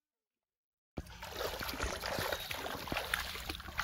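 Water splashes as feet wade through shallow water.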